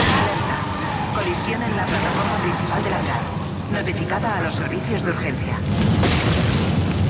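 A creature screeches and snarls close by.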